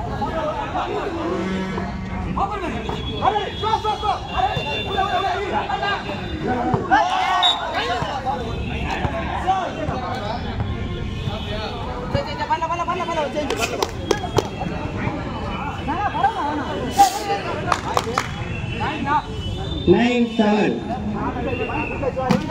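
Young men shout and call out loudly outdoors.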